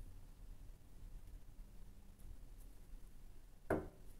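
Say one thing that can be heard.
Cards tap softly on a cloth-covered table as they are set down.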